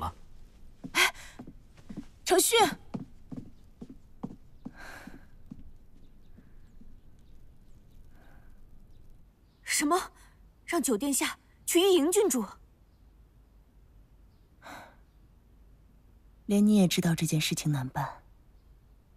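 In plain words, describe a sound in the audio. A woman speaks with urgency, close by.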